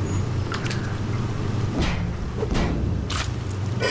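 A wrench knocks on a metal door.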